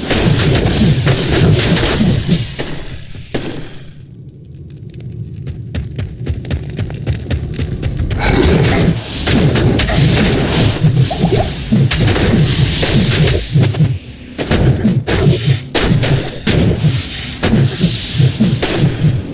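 Magic spells crackle and buzz during a fight.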